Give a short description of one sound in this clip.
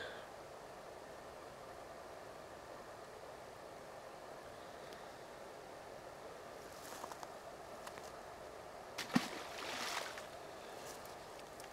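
A light wind blows steadily outdoors.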